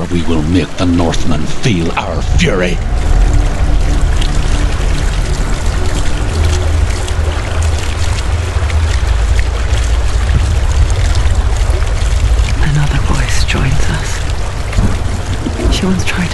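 A waterfall roars and rushes nearby.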